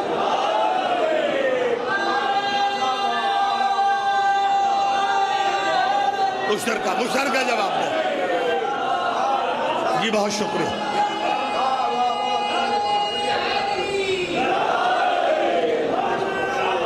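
A man chants loudly and with feeling through a microphone and loudspeakers.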